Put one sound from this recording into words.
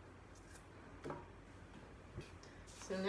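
A pencil is set down on a wooden table with a light tap.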